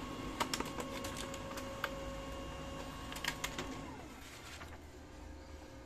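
A laser printer whirs with a steady whine, then winds down.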